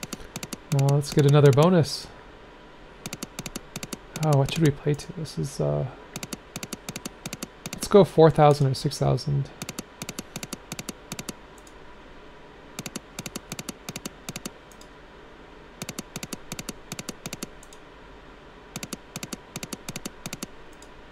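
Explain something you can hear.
Slot machine reels tick rapidly as they spin.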